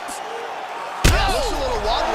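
A punch lands with a heavy thud.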